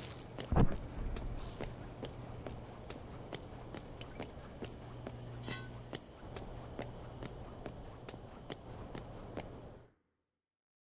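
Footsteps run quickly on pavement.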